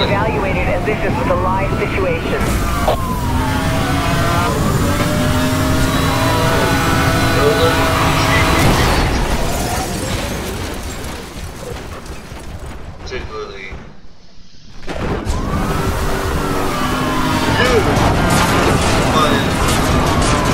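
A police siren wails close by.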